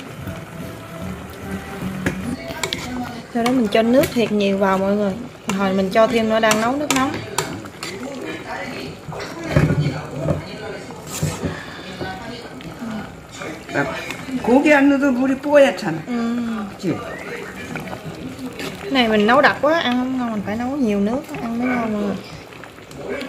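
A metal spoon clinks and scrapes against a pot.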